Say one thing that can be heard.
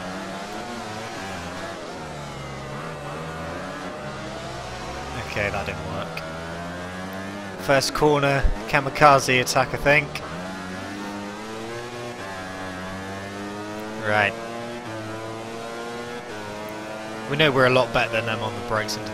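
A motorcycle engine revs and whines, rising and falling in pitch as it shifts gears.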